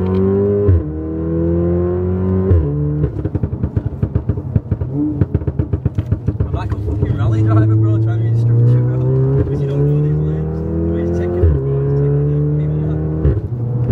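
A car engine revs hard and climbs through the gears, heard from inside the car.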